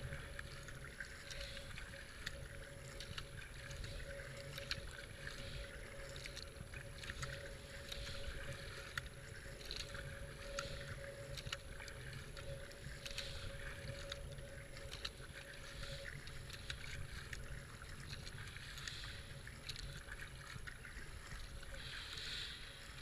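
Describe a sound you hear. Water swishes and gurgles along a kayak's hull.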